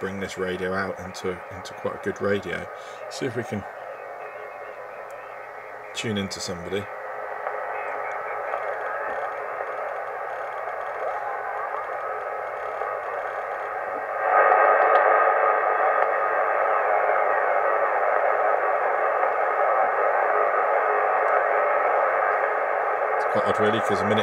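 A radio receiver hisses with steady static that grows louder partway through.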